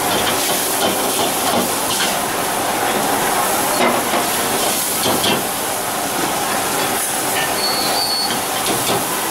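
A metal ladle scrapes and clinks against a wok.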